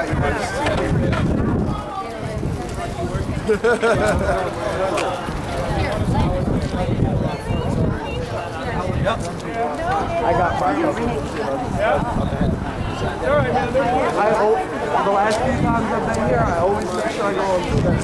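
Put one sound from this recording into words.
A crowd of men and women talk at once, close by, outdoors.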